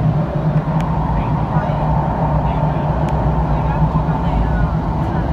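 A subway train rumbles loudly through a tunnel.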